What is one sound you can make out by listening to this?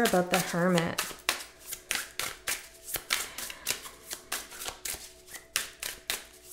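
Cards are shuffled with quick soft flicks.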